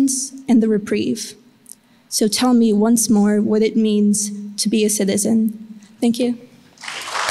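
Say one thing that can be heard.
A young woman reads aloud calmly into a microphone.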